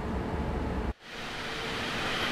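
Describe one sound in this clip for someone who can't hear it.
A passing train rushes by with a growing hiss.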